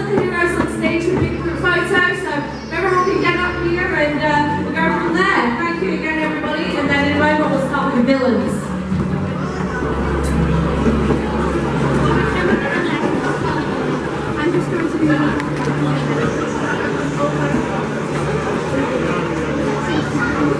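A crowd of people chatter nearby in a large echoing hall.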